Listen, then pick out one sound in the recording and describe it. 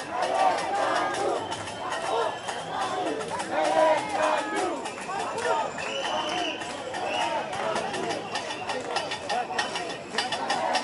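A large crowd of men and women chatters and calls out all around outdoors.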